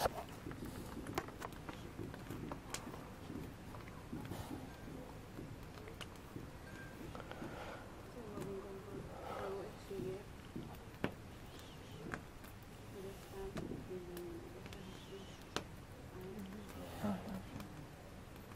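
A group of people talk quietly nearby.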